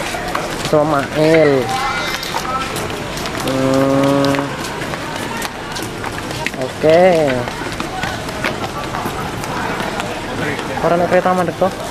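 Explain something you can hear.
Young men shout and call out loudly nearby.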